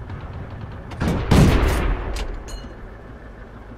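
A tank cannon fires with a loud, booming blast that rumbles away.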